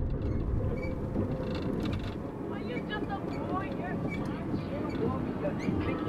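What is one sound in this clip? A marker squeaks on a glass window.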